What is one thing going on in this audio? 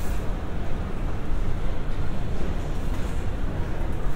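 An escalator runs with a steady low hum.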